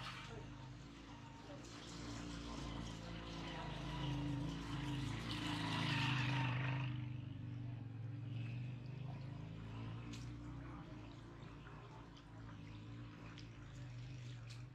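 A low engine drones steadily nearby.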